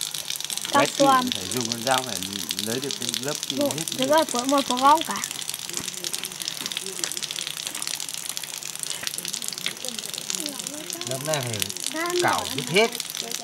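Water trickles and splashes onto wet cement.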